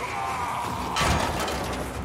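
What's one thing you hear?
Gunfire crackles in a rapid burst.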